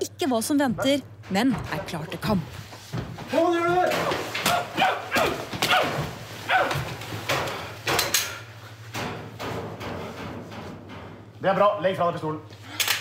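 Men shout during a scuffle.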